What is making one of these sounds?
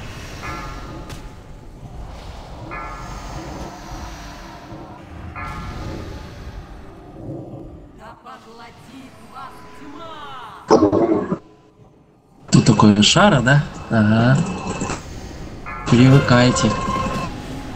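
Magic spells crackle and boom in a busy fantasy battle.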